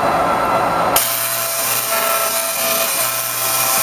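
Electric sparks crackle and buzz loudly.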